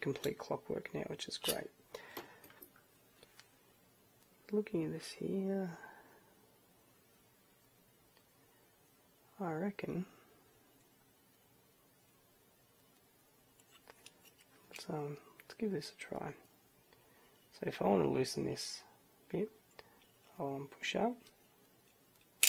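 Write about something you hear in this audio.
Plastic parts click and rattle as they are fitted together by hand.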